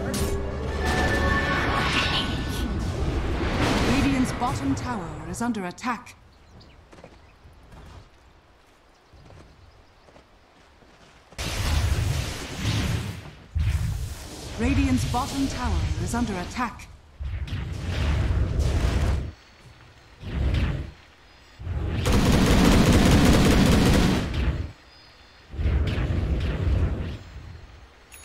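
Game spells crackle and burst in loud bursts of battle effects.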